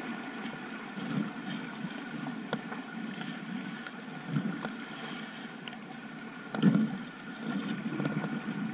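A paddle splashes and dips into the water.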